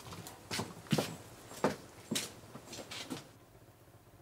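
A window rattles and clicks as it is pushed open.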